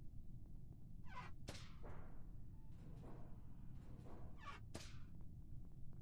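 Short whooshing game sound effects play.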